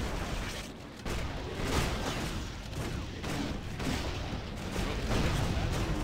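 Bursts of fire whoosh.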